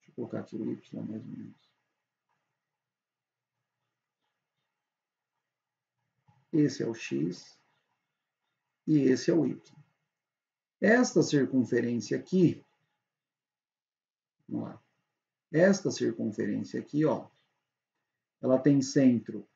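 A young man talks calmly and explains, close to a microphone, in bursts with pauses.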